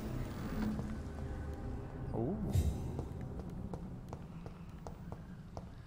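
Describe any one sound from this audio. Footsteps tread slowly on a hard floor.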